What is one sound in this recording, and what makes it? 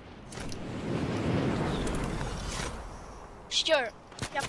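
Wind rushes loudly past a gliding figure, then fades.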